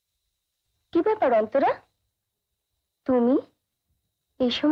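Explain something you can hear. A woman speaks with concern, close by.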